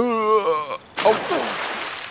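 Water rushes and splashes loudly.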